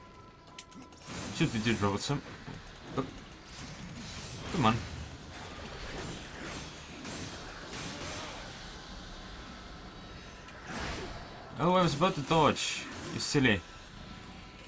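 Blades swish and clang in a fast, noisy fight.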